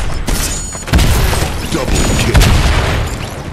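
A heavy blow lands with a loud smack.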